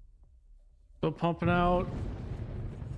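A deep whooshing game sound effect swells and fades.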